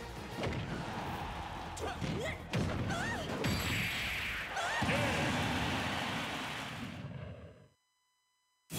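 Loud blasts and explosions burst from a fighting video game.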